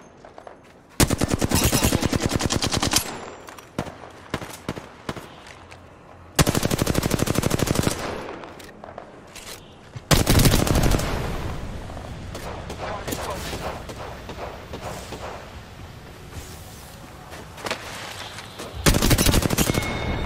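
Rapid automatic gunfire bursts loudly in short volleys.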